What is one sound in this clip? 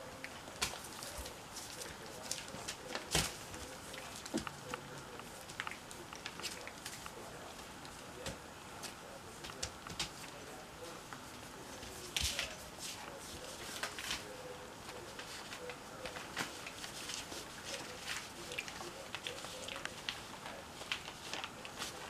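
Newborn puppies suckle with small, wet smacking sounds close by.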